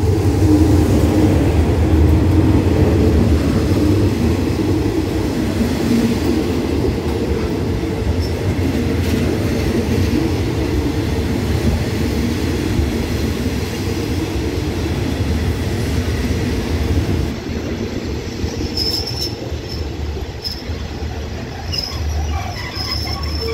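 Train wheels clatter and squeal on the rails as the carriages roll slowly past.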